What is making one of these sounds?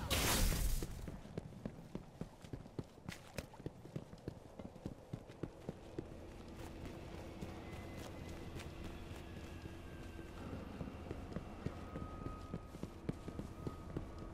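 Quick footsteps run across a hard stone floor.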